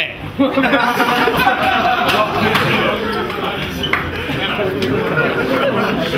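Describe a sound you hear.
A crowd of young men murmurs and cheers in a noisy room.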